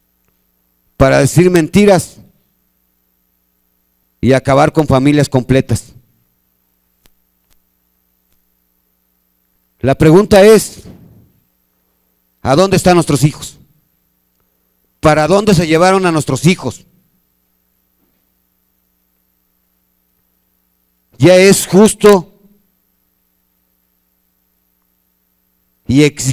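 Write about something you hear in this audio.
A middle-aged man speaks into a microphone in short bursts with long pauses.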